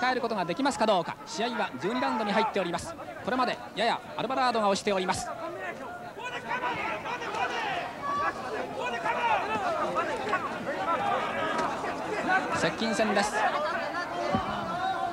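A crowd cheers and murmurs in a large hall.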